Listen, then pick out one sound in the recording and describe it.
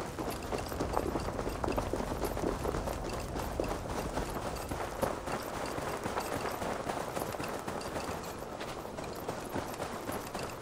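Footsteps crunch quickly on a gravel path.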